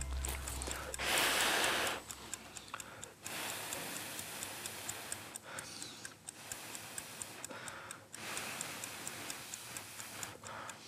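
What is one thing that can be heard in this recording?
A young man blows on hot noodles in short breaths.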